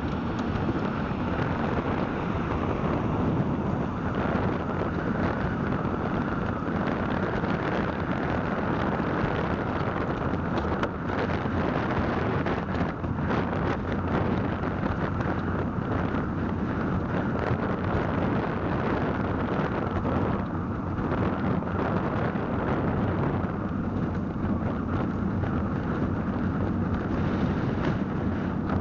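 Wind rushes across the microphone.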